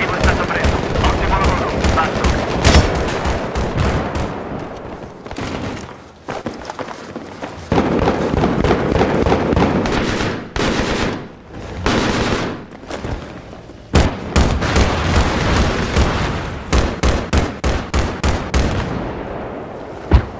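A rifle fires rapid bursts of gunshots.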